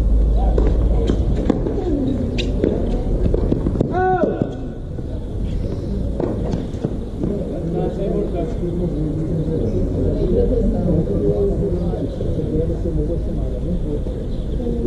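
A tennis ball is struck sharply with a racket, back and forth.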